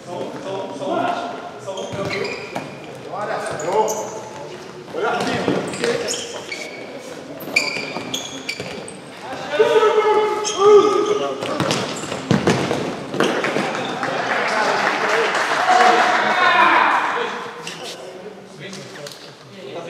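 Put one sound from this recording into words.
Young men shout to each other across an echoing hall.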